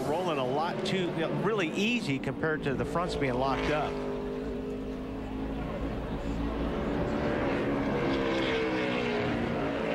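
A single race car engine roars past up close.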